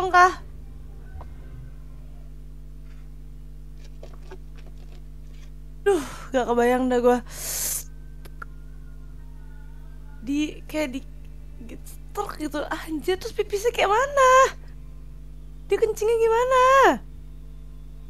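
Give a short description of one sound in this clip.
A young woman talks with animation through an online call.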